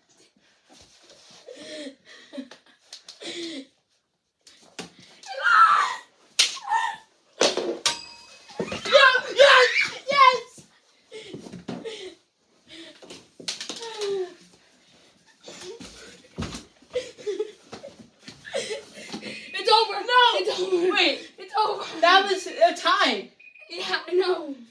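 Young boys talk and shout excitedly nearby.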